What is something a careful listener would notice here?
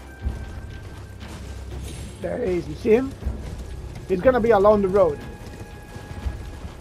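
A horse's hooves thud as it gallops.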